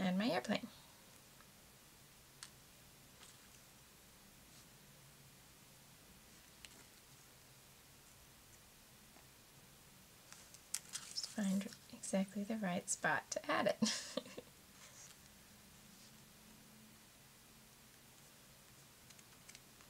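Paper rustles and crinkles softly under hands.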